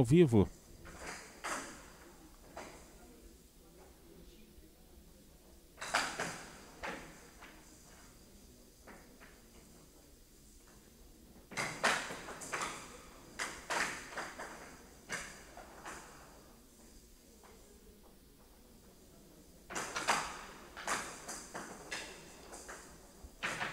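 Paddles strike a ball with sharp clacks on a wooden table.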